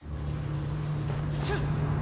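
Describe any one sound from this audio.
Footsteps run across a stone floor.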